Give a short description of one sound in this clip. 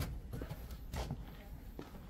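Footsteps tap on stone paving.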